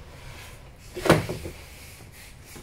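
A hard plastic case knocks and rattles briefly.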